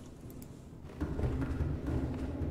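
Hands clank on the rungs of a metal ladder.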